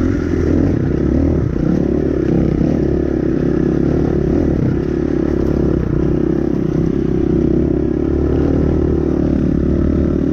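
Tyres crunch over loose rocks and gravel.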